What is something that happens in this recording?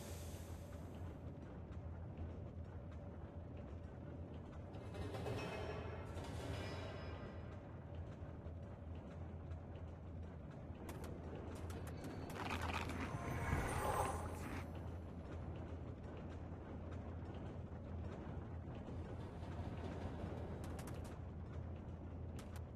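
Blades swish through the air in quick swings.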